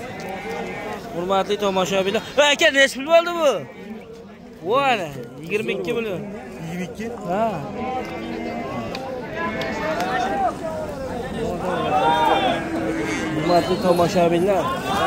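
Several men talk and call out loudly nearby, outdoors among a crowd.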